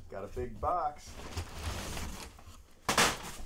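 Packing paper rustles and crinkles.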